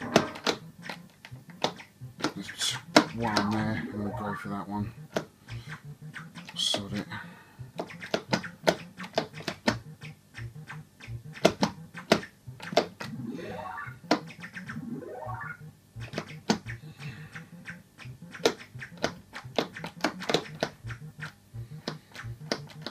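An arcade game plays a steady beat of low electronic bleeps.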